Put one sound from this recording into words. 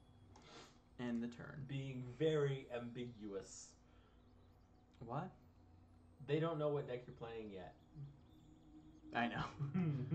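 A young man talks with animation, close up.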